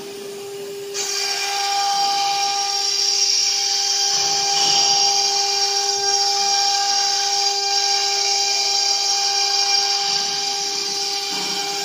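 A router bit cuts into wood with a loud, rough hiss.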